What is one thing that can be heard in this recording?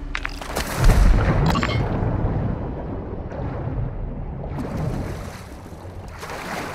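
Water bubbles and gurgles, muffled as if heard from underwater.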